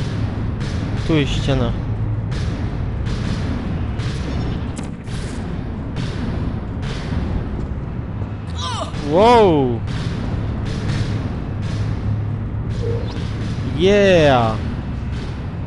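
A sci-fi gun fires with a sweeping electronic whoosh.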